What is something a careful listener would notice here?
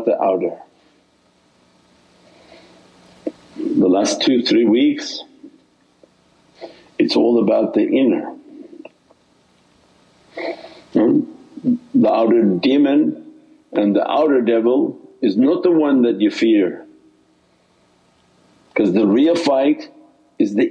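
An elderly man speaks calmly and slowly through a microphone, with pauses.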